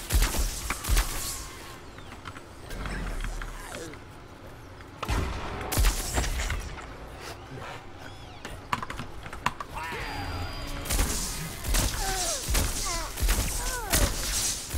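Electric blaster shots zap and crackle in quick bursts.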